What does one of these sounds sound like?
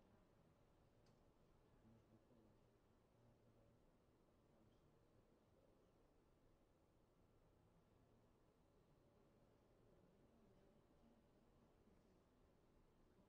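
A faint murmur of distant voices fills a large echoing hall.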